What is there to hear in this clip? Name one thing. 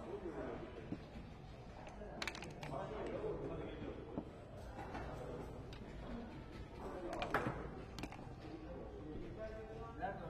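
Dice rattle in a cup and tumble onto a board.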